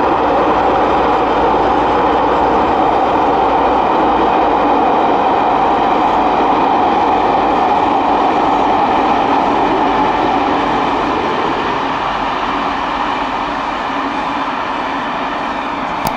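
A diesel locomotive engine drones loudly as a train passes, then slowly fades.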